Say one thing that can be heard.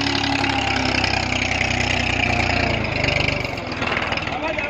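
A tractor engine idles nearby with a low, steady rumble.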